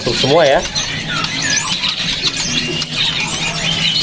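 A small bird's wings flutter briefly.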